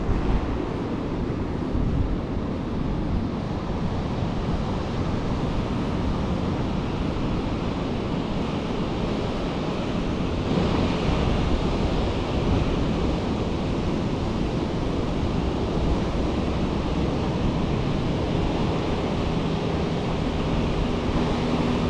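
Ocean waves break and wash ashore nearby.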